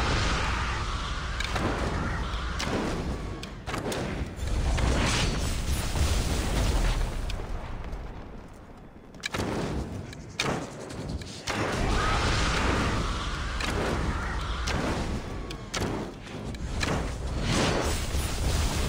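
A bowstring twangs as arrows are shot again and again.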